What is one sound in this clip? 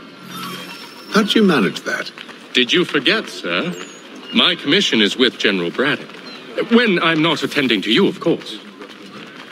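A man speaks calmly and briskly, close by.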